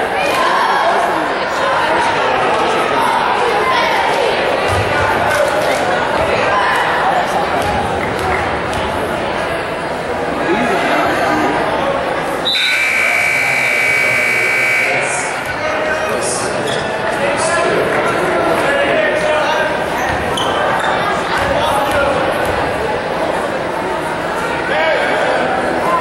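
A large crowd chatters and cheers in an echoing gym.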